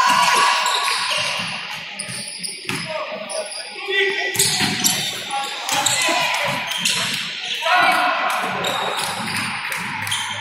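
Sneakers squeak on the floor of a large echoing hall.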